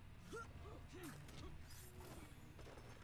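A blade strikes a body with a sharp thud.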